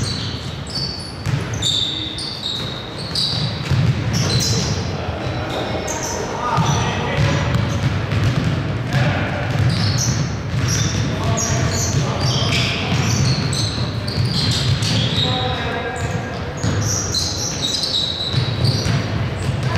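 Sneakers squeak sharply on a wooden court, over and over.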